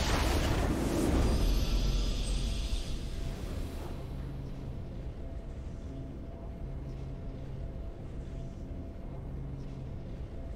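A triumphant fanfare of music plays and settles into a soft, steady tune.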